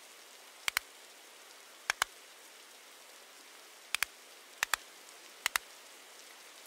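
Short, sharp clicks sound as menu buttons are pressed.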